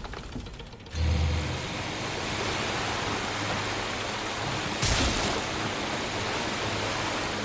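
A boat motor hums steadily.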